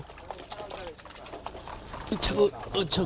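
A fish thrashes and splashes in a tub of water.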